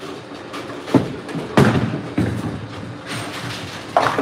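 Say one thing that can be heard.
A bowling ball thuds onto a lane and rumbles as it rolls.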